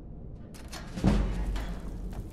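A lock springs open with a loud clunk.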